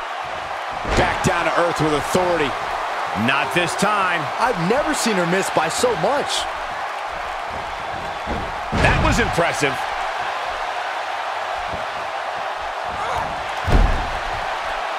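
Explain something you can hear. Bodies slam heavily onto a wrestling mat with loud thuds.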